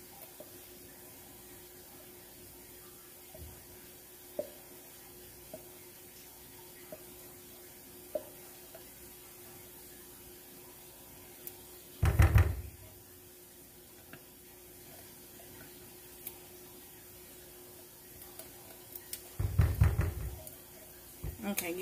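A spatula scrapes softly inside a metal can.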